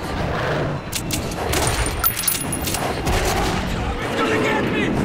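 A gun fires several sharp shots.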